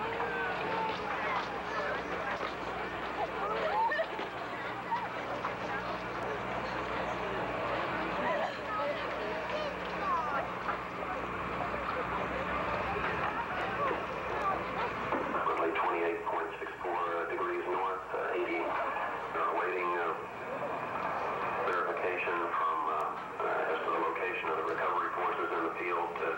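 A crowd of people cheers and shouts excitedly outdoors.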